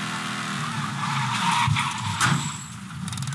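Tyres skid and screech as a car slides to a stop.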